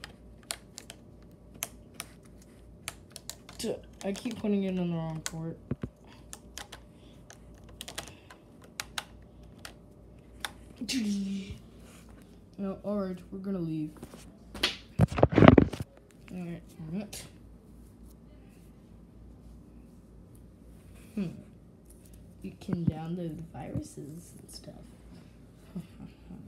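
A hand taps and bumps against a hard counter.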